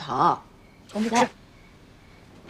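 A young boy answers briefly and sulkily.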